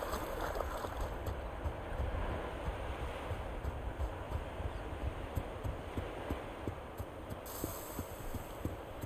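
Quick footsteps patter on sand.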